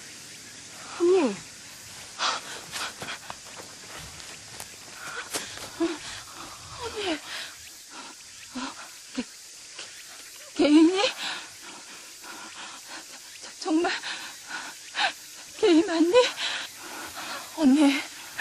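A young woman speaks close by, urgently.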